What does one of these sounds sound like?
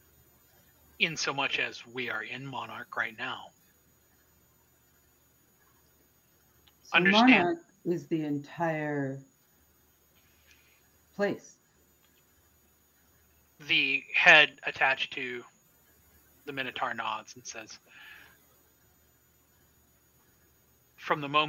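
A man talks with animation over an online call.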